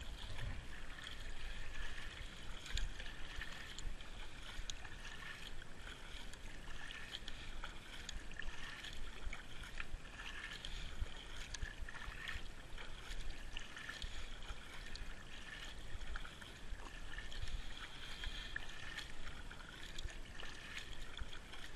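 A kayak paddle dips and splashes in calm water at a steady rhythm.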